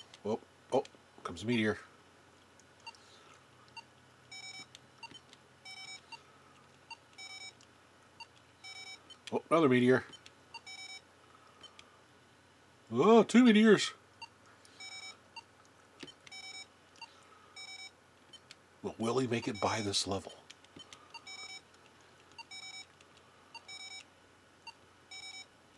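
A handheld electronic game beeps in short, regular electronic bursts.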